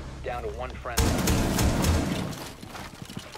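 An explosion bursts through a wooden wall, scattering debris.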